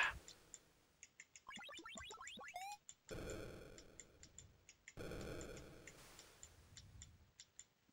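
Electronic engine noise from a Commodore 64 racing game buzzes and hisses in bursts.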